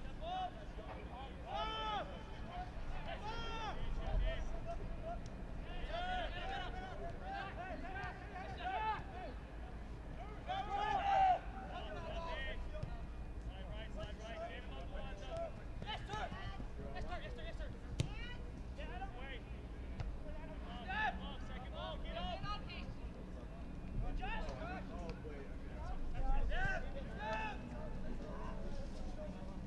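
Young men shout and call to each other across an open outdoor field.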